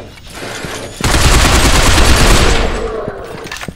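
A rifle fires a loud rapid burst.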